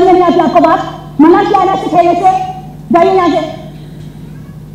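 A woman speaks loudly and with emotion on a stage, heard through a microphone.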